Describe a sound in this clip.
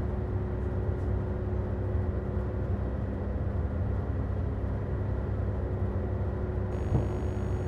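A fan whirs with a steady low drone.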